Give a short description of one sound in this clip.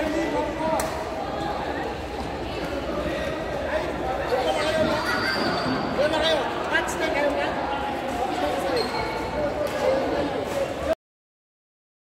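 A crowd of people chatters in a large echoing hall.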